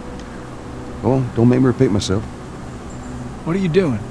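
A man speaks calmly and firmly, close by.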